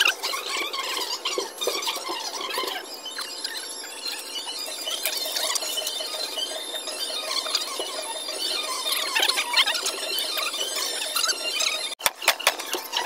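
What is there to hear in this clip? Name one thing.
Hands squelch and slap wet raw meat.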